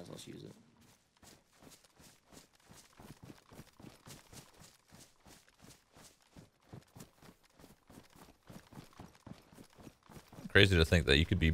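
Footsteps crunch steadily through grass and gravel.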